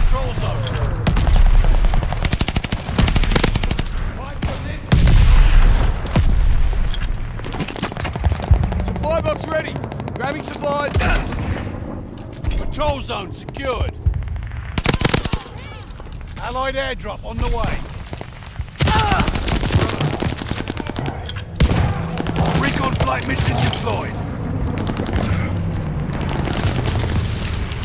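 Gunfire rings out in rapid bursts.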